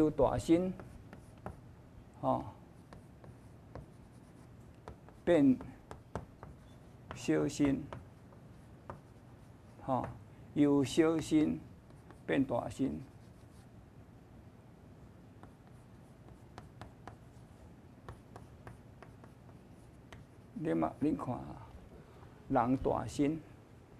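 An elderly man speaks calmly in short phrases with long pauses.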